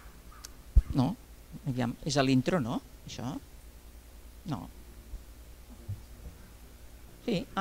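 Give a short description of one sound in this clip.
A woman speaks into a microphone in short phrases.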